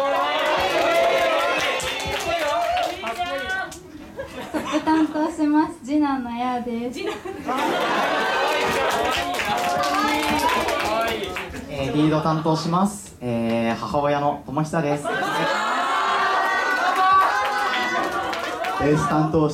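Young people clap their hands.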